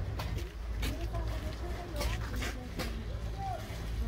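People murmur faintly in a crowd nearby.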